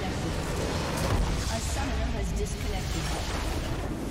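A large structure bursts apart with a deep rumbling explosion.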